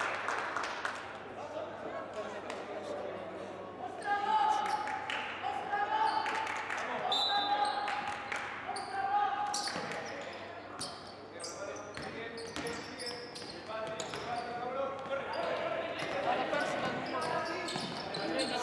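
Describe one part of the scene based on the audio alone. A basketball bounces on the court with thuds.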